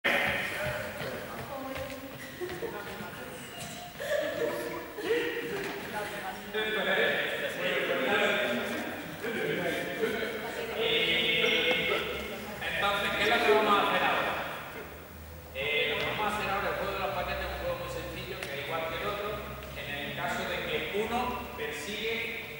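Young people chatter and call out in a large echoing gym.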